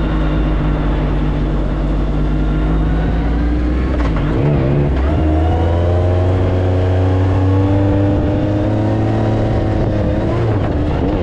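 An off-road buggy engine roars loudly, its pitch rising and falling.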